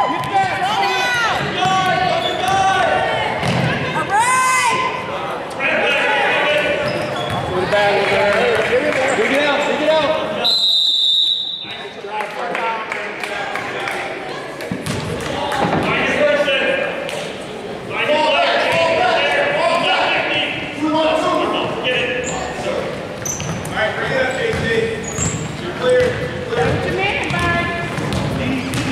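A crowd of children and adults shout and cheer, echoing in a large hall.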